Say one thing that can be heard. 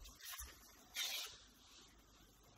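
A cloth rubs and squeaks across a hard, smooth surface.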